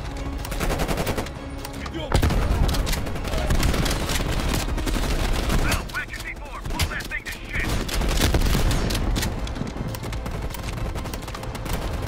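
A shotgun fires and is pumped.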